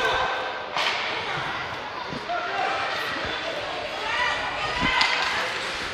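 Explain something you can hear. A hockey stick smacks the puck.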